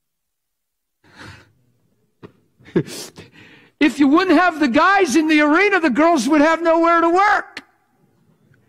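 An older man speaks animatedly through a microphone in a large hall.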